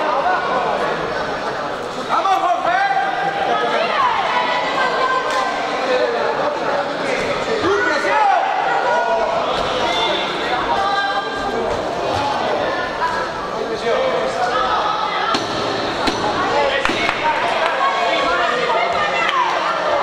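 A crowd shouts and cheers loudly in an echoing hall.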